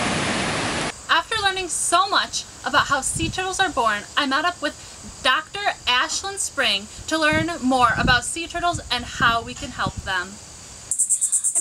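A young woman speaks calmly and clearly, close to a microphone.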